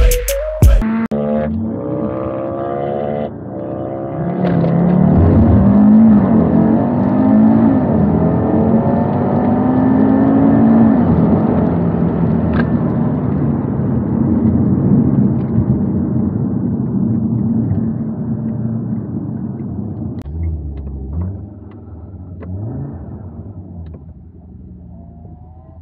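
A car engine roars from inside the cabin as the car accelerates hard through the gears.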